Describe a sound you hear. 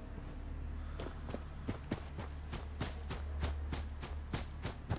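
Footsteps crunch steadily over dry ground.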